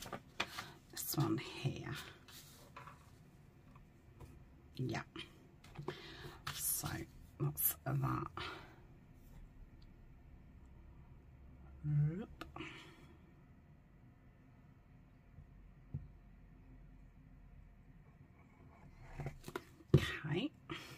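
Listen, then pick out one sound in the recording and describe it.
Paper rustles and crinkles as hands smooth a page.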